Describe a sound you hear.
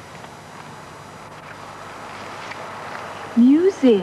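A man talks calmly, close by, outdoors.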